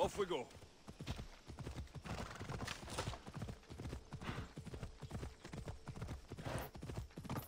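A horse's hooves beat steadily at a gallop.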